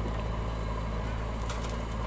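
Dirt pours and thuds into a metal trailer.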